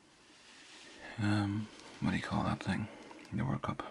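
Paper rustles softly as a hand moves across a sheet.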